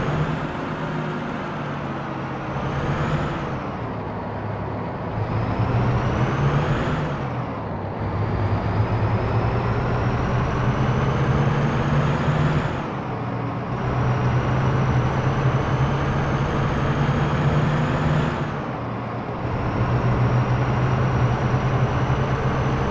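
A bus engine drones and rises and falls in pitch as the gears change.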